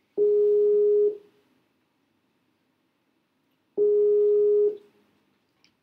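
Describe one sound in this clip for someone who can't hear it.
An online call rings twice through loudspeakers.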